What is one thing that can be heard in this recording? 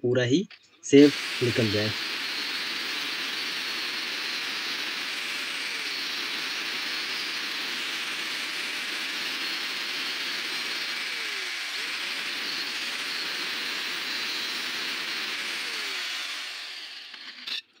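An angle grinder whines loudly as it cuts through metal.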